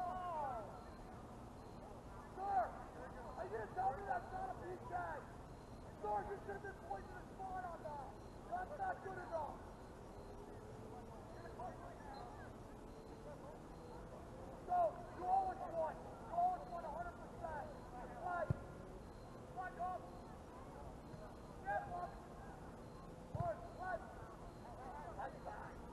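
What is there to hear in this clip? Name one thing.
Players shout to each other far off across an open field outdoors.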